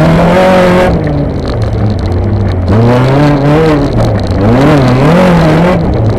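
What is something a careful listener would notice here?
A race-prepared Honda Civic engine revs hard through the gears, heard from inside the cabin.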